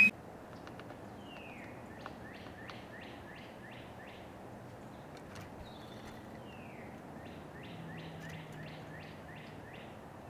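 A woodpecker taps softly on a feeder.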